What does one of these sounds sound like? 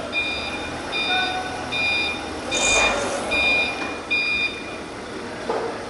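A forklift's warning beeper sounds in short, repeated beeps.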